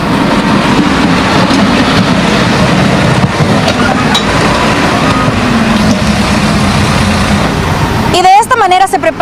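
A backhoe loader's diesel engine rumbles loudly up close.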